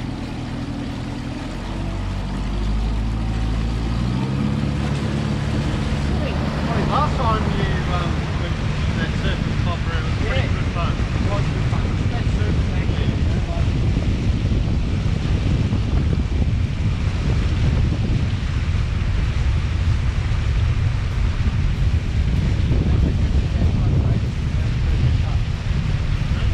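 An outboard motor hums at idle, then revs up and drones loudly.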